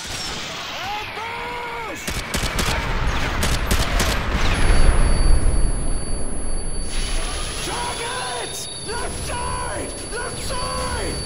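A man shouts urgently over a radio.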